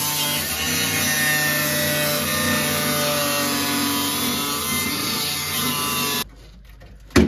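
An angle grinder whines loudly as it cuts metal, then stops abruptly.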